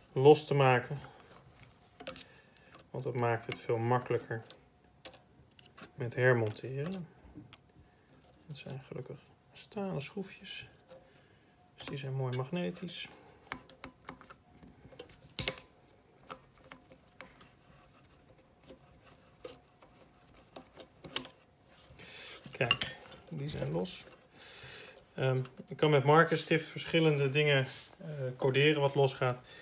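Wire connectors click and rustle as they are handled.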